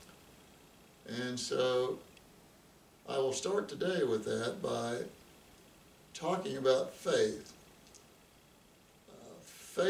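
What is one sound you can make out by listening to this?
An elderly man speaks calmly and close by, in short phrases with pauses.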